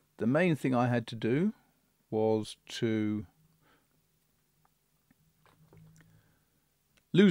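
A middle-aged man speaks calmly and closely into a microphone, pausing between phrases.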